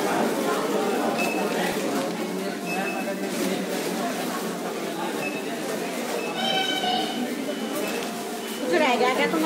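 A paper receipt rustles in a hand.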